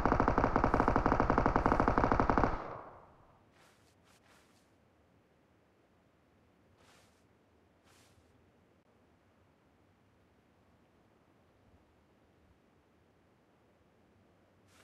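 Grass rustles softly as something crawls through it.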